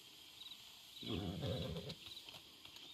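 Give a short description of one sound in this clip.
A horse snorts and nickers nearby.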